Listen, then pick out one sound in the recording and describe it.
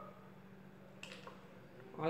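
Liquid pours through a funnel into a plastic bottle.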